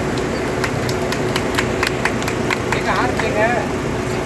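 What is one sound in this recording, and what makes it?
People clap their hands in quick bursts.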